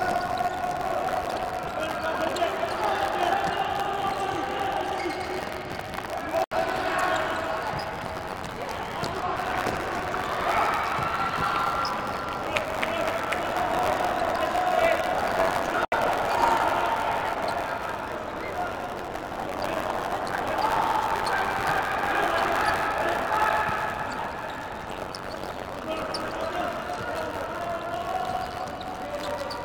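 A ball thuds as players kick it on a hard indoor court.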